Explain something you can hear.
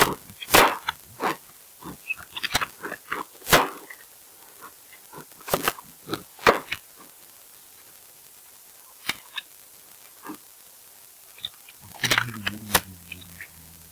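Footsteps thud quickly on wooden stairs and stone.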